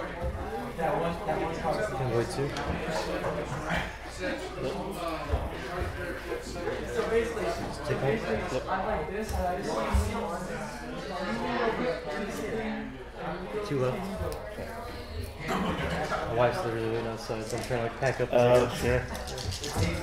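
Small plastic pieces click on a table.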